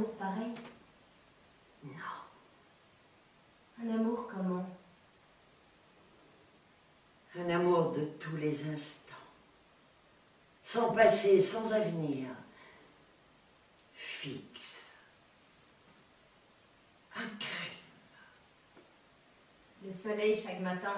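An older woman speaks close by in short, animated bursts with pauses between.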